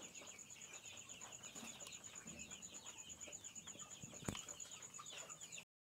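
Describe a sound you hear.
Many chicks peep busily and constantly.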